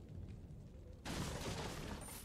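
A knife slashes through the air.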